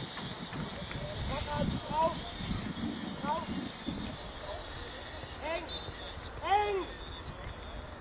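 Young men shout to each other from afar across an open pitch outdoors.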